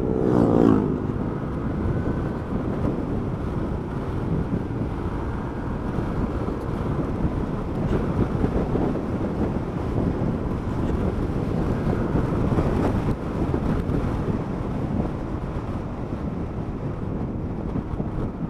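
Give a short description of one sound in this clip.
Wind rushes loudly past a helmet.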